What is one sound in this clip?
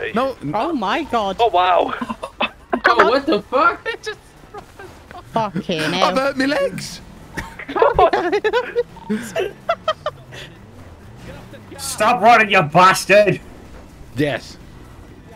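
A young man talks and laughs with animation into a close microphone.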